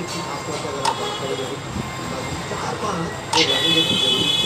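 A game piece clicks down onto a board.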